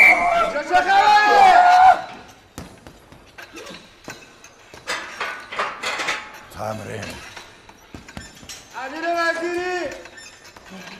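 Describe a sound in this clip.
A young man groans loudly with strain.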